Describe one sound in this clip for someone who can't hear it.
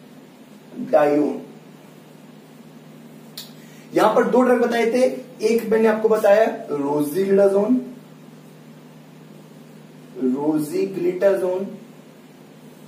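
A man speaks calmly, as if teaching, close by.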